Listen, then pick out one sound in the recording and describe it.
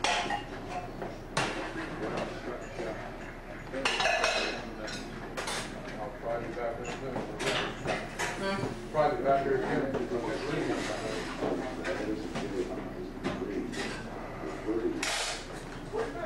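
Several men talk at once.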